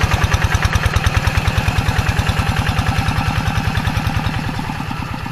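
A small engine chugs steadily and loudly close by.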